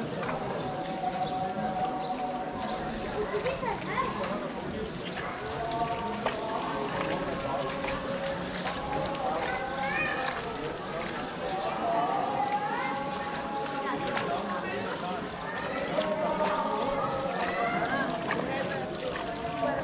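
A crowd of people murmurs and chats outdoors.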